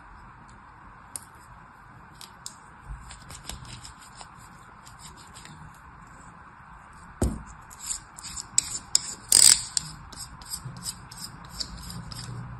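A knife scrapes and crumbles a dry, powdery block.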